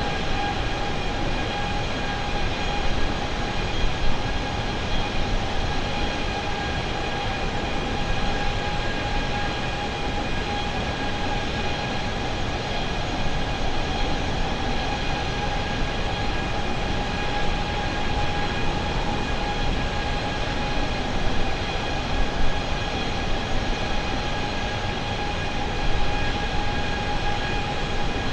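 Jet engines roar steadily with a constant whine.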